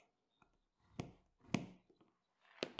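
A scratch awl scores a line in leather.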